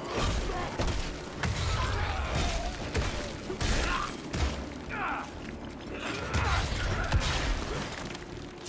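Blades slash and strike with heavy thuds.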